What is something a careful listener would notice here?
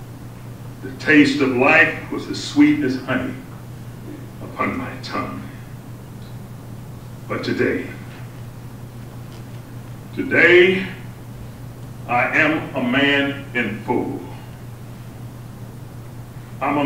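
A middle-aged man speaks calmly through a microphone in a room, with pauses.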